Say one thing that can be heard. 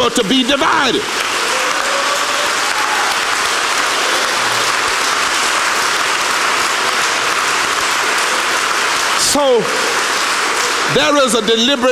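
A large crowd applauds loudly.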